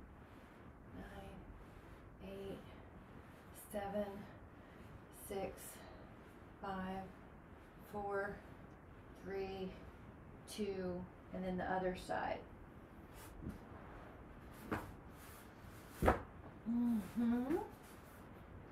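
A woman speaks calmly and slowly, close by.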